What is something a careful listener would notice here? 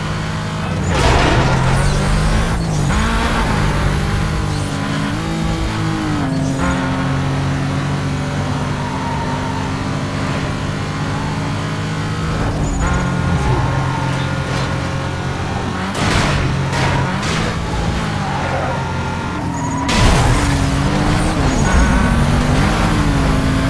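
Tyres screech around bends.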